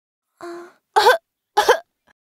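A young child's cartoon voice cries out in alarm.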